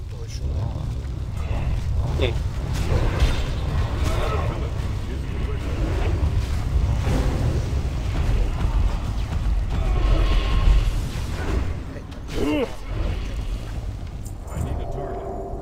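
Spell blasts and weapon clashes ring out in a loud battle.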